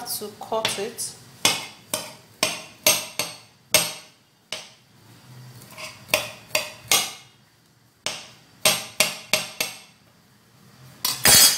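A knife chops garlic on a hard counter with quick, sharp taps.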